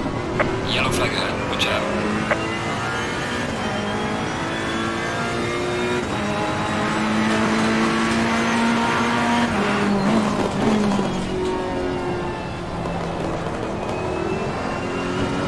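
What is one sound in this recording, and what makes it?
A race car engine roars at high revs, its pitch rising and dropping with the gear changes.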